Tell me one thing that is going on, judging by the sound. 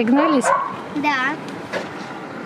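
A young girl speaks brightly close by.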